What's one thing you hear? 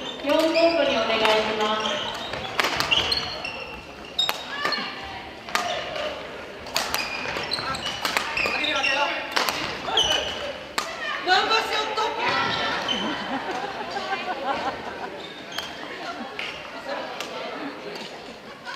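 Shoes squeak on the hall floor.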